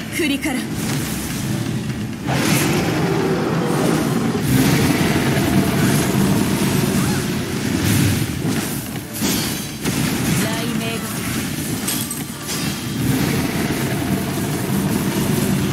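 Electric blasts crackle and zap again and again.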